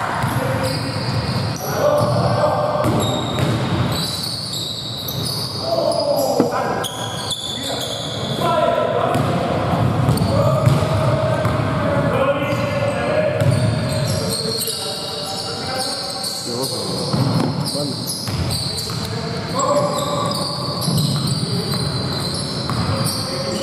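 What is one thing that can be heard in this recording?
A basketball bounces with hollow thuds in an echoing hall.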